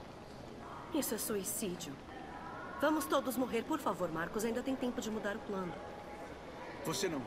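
A young woman speaks urgently and pleadingly, close by.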